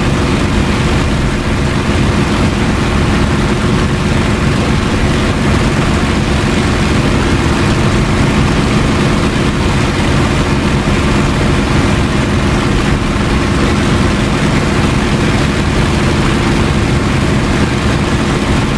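A propeller aircraft engine drones loudly and steadily.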